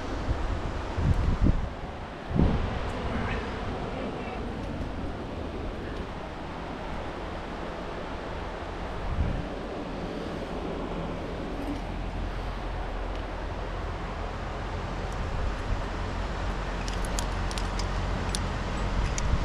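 Wind blows steadily across an open rock face outdoors.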